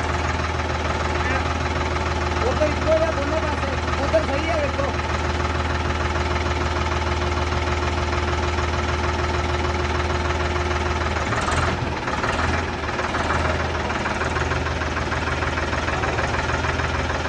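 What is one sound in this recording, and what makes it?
A tractor engine runs with a steady low rumble.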